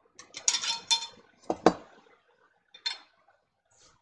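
A glass jar clinks as it is set down.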